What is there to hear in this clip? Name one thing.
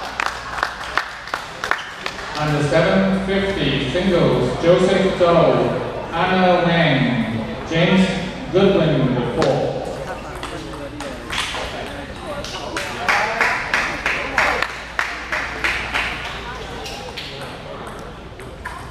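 A table tennis ball clicks sharply back and forth off paddles and a table in an echoing hall.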